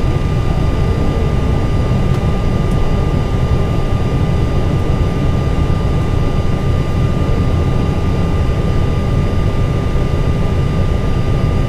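Jet engines hum steadily with a low rumble inside a cockpit.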